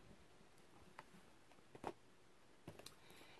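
A plastic disc case clicks and rattles in hands.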